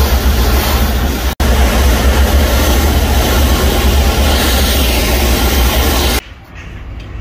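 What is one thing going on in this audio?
A pressure washer sprays loudly with a steady hissing roar.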